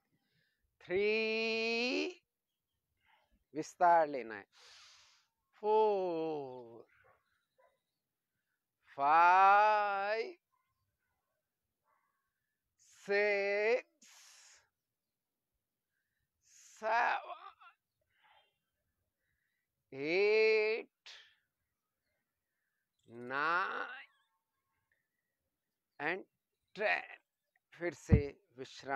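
A man chants nearby in long, drawn-out phrases with pauses between them.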